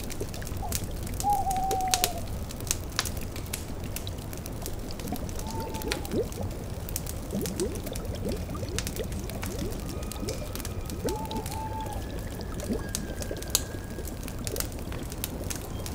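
A cauldron bubbles steadily.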